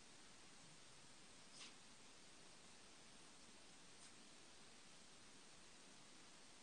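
A pen nib scratches softly on paper.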